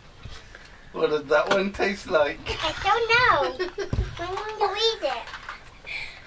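A small child talks excitedly close by.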